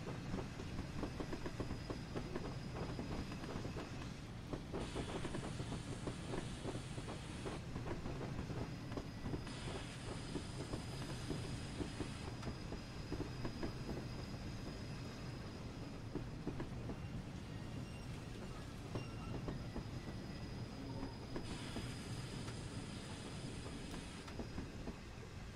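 A steam locomotive rumbles and chuffs steadily along the track.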